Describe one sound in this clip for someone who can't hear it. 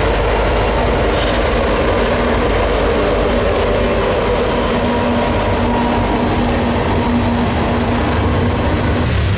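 A freight train rumbles past with steady clattering and screeching of wheels on rails.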